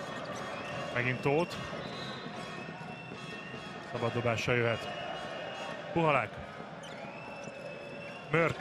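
Sports shoes squeak sharply on a wooden court.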